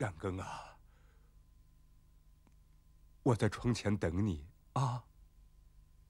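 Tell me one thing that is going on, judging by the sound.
A man speaks in a low, hushed voice close by.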